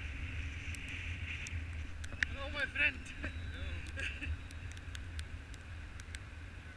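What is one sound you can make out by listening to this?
Wind rushes and buffets against a microphone.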